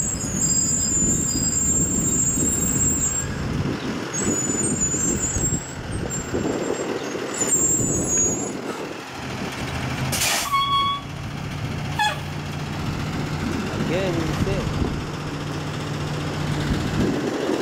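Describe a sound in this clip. A car engine runs as a car rolls slowly by.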